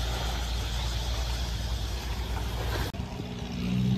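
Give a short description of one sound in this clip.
Wind blows across an open shore.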